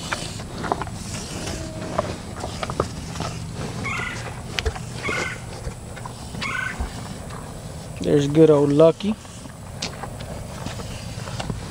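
Cattle crunch and chew feed pellets close by.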